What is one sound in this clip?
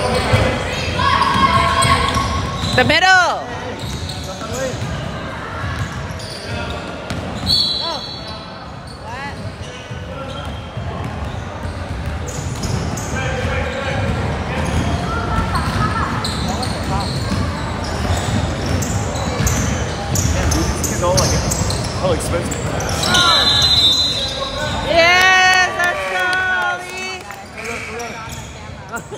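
Young players shout and call out across the court.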